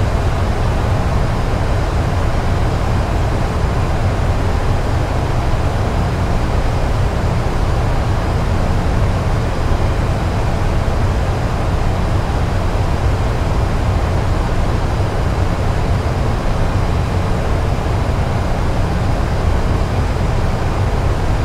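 Jet engines roar steadily with a deep rumble.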